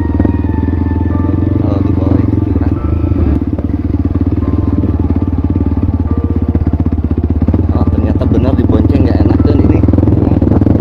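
A motorcycle engine putters steadily close by.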